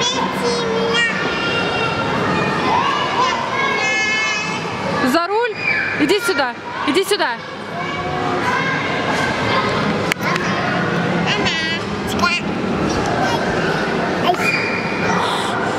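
Children chatter and shout in a noisy, echoing hall.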